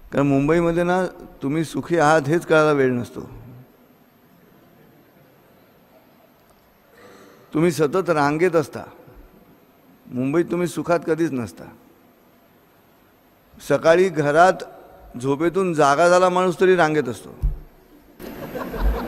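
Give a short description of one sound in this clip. A middle-aged man speaks slowly into a microphone in phrases, with long pauses between them.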